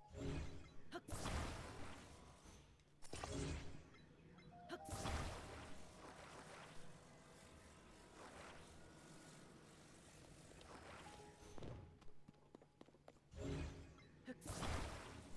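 Magical whooshing and chiming effects sound in bursts.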